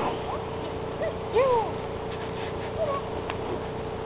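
A dog whines in short high yelps.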